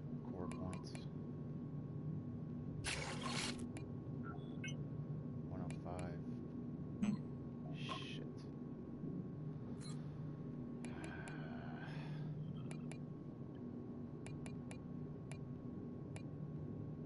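Menu sounds click and whoosh as selections change.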